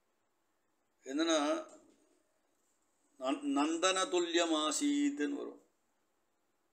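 A man chants slowly and melodically, close to a microphone.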